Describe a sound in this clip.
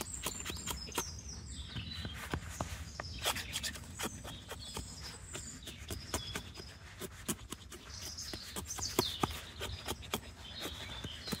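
A knife whittles a wooden stick with quick scraping strokes.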